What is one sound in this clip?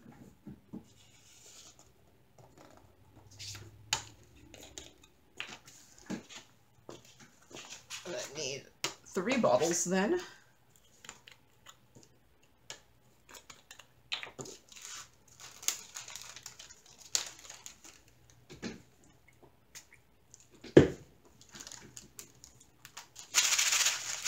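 Small plastic containers click and clatter as hands handle them.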